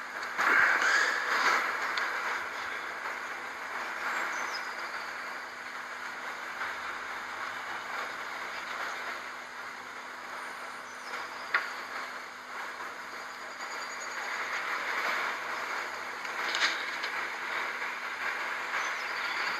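A dog's paws patter softly along a dirt path.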